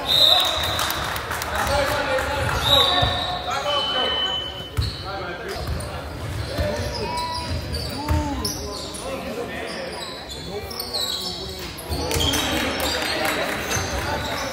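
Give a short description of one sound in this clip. A basketball bounces with dull thuds.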